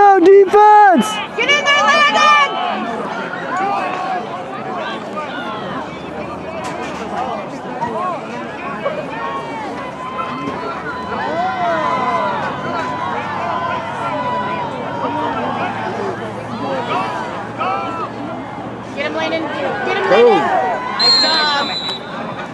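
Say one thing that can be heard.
Several young men shout and call out loudly.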